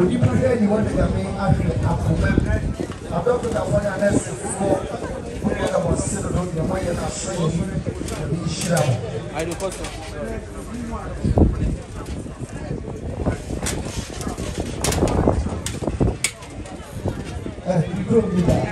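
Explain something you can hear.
People talk in a murmur around the listener outdoors.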